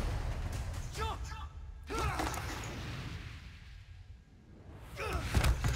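A young man grunts and shouts with strain.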